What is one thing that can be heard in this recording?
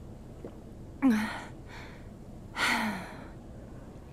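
A young woman speaks a few short words close by.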